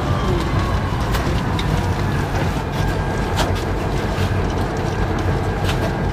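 Train wheels clatter and click on the rails.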